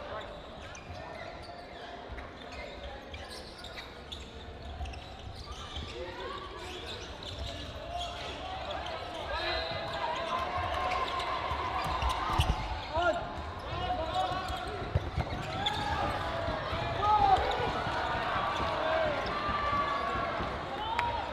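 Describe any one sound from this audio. A crowd of players and spectators chatter and call out in a large echoing hall.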